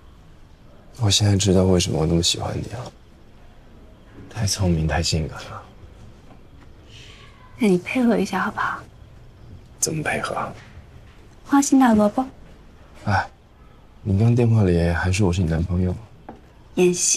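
A man speaks softly and earnestly up close.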